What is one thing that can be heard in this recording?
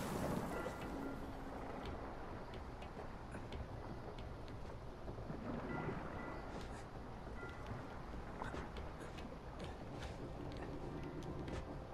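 Hands knock and scrape while climbing a metal hull.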